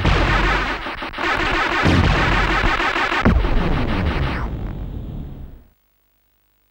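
Loud arcade explosions and gunfire rumble and crackle, then fade away.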